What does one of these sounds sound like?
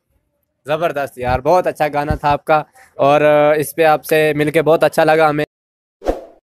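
A young man speaks with animation into a microphone, close by.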